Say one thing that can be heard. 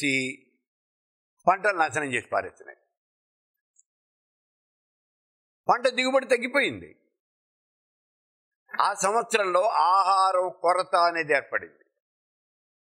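An elderly man speaks slowly and calmly into a close microphone, with long pauses.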